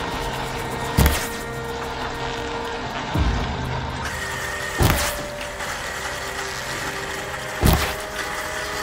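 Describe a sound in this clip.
A bow fires arrows with sharp twanging thumps.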